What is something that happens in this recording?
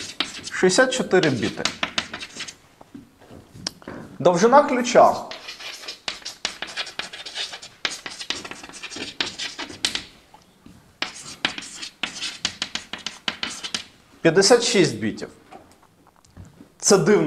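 A man speaks in short bursts, in an echoing room.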